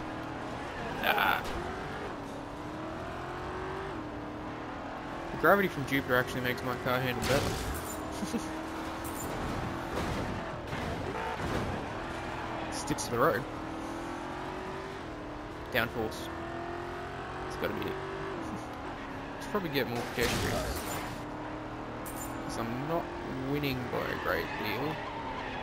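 Metal crashes and scrapes as a video game car hits obstacles.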